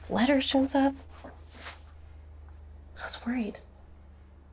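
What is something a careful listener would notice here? A young woman speaks softly, close by, her voice shaky.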